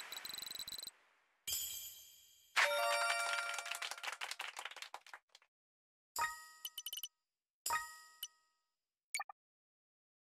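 Bright electronic chimes ring out in quick bursts.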